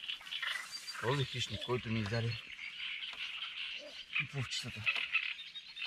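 A man speaks briefly and casually nearby, outdoors.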